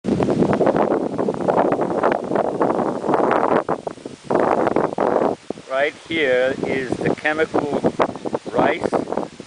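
Wind blows across an open field, rustling the tall grass.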